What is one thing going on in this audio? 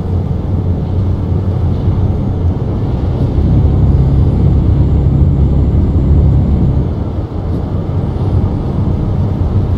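A heavy truck engine drones steadily at speed.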